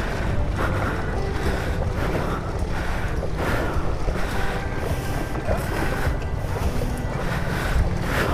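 Water splashes around motorbike wheels.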